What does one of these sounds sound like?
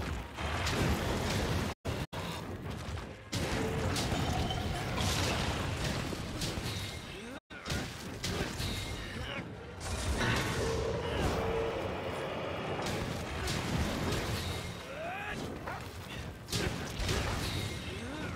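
Fiery explosions burst with loud booms.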